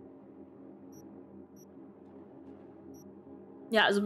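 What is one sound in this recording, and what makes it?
Soft electronic menu blips sound as items are highlighted.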